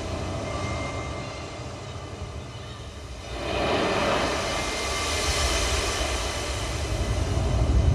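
Loudspeakers play the rushing sound of sea waves and wind, swelling louder partway through.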